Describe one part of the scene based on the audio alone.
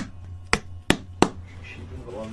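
A hammer taps sharply on leather.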